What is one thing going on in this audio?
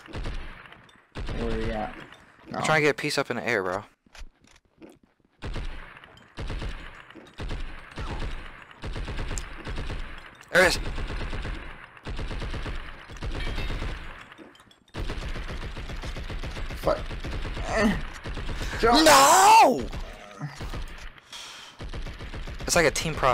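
A rifle fires rapid bursts of automatic shots.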